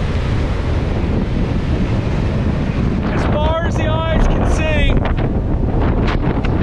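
Waves crash and surge onto the shore.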